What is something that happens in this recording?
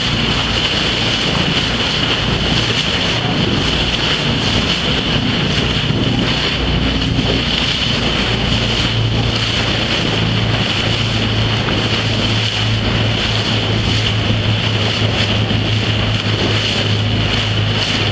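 Choppy water slaps against a boat's hull.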